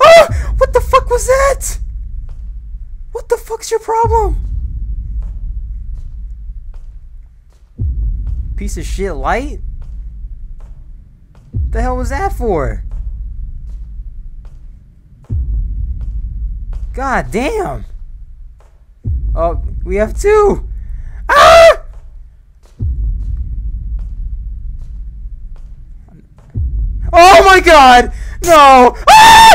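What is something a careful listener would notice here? A young man talks into a close microphone in short bursts, ending with a loud, startled outburst.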